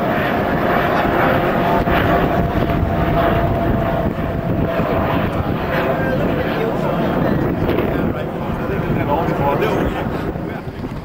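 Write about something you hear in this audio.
A helicopter flies overhead.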